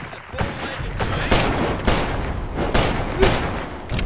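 A gun fires sharply.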